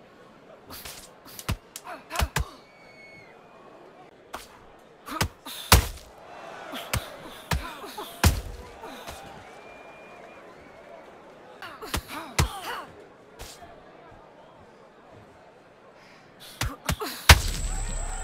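Boxing gloves thud against bodies in sharp punches.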